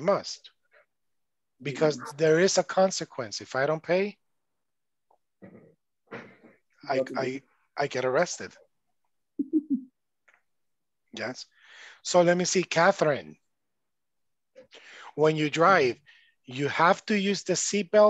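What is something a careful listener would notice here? A man speaks calmly over an online call.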